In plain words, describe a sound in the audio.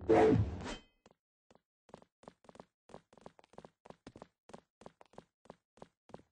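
Game footsteps tap at a steady pace.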